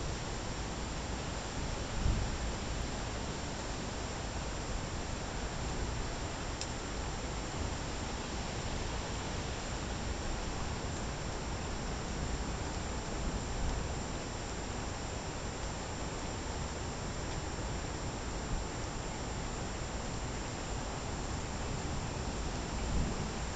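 Thunder rumbles in the distance.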